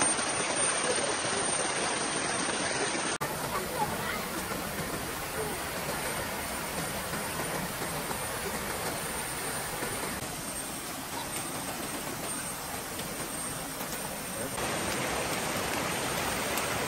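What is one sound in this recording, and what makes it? Water rushes and splashes over rocks in a stream.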